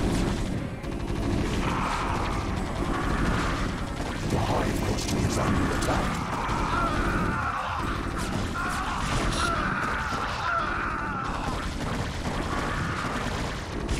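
Gunfire and explosions crackle in a battle.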